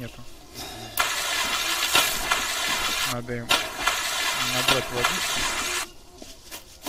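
Water splashes and gurgles steadily for a few seconds.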